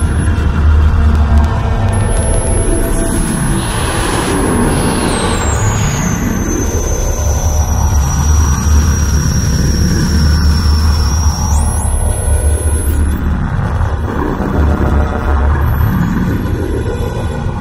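Electronic music drones with a low pulsing hum and high whining tones.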